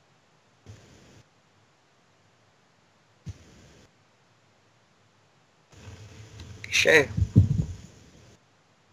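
A teenage boy laughs through an online call.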